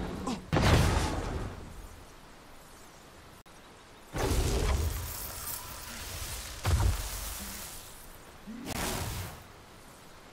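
A magic spell bursts with a sudden whooshing blast.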